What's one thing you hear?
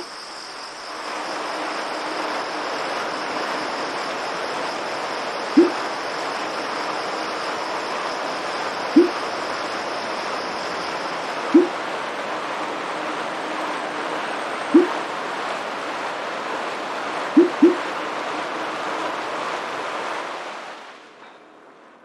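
An indoor bike trainer whirs steadily as someone pedals.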